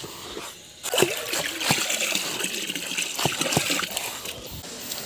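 Water splashes as it pours into a barrel.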